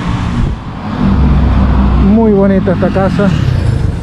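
A motorcycle engine rumbles as it passes nearby.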